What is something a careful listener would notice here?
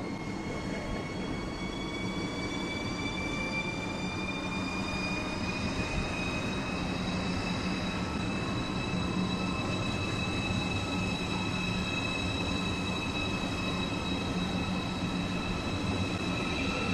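A high-speed electric train pulls away, its motors whining higher as it gathers speed.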